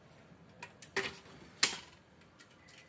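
A printer lid snaps open with a click.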